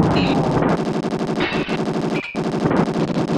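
Retro video game gunfire pops in quick bursts.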